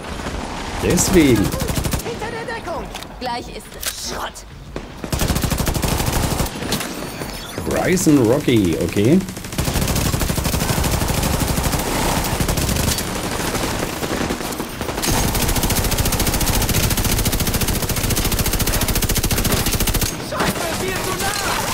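Automatic rifles fire in long, rapid bursts.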